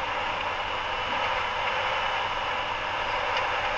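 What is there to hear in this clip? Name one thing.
A heavy truck roars past close by.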